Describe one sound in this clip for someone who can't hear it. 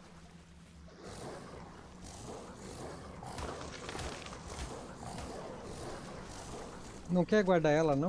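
Water splashes as a creature swims.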